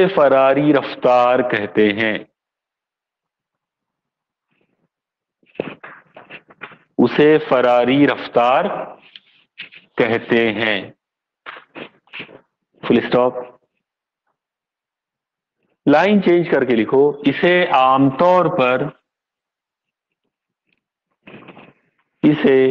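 A middle-aged man speaks calmly in pauses, close by.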